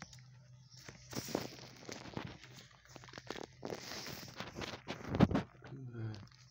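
A dog paws and bumps against a glass door close by.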